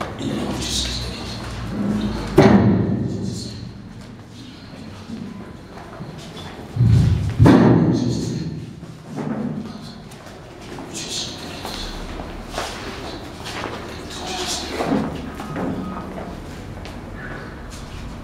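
A crowd of men and women talk and murmur.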